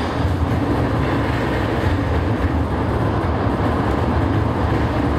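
A train car rumbles and rattles loudly along the tracks.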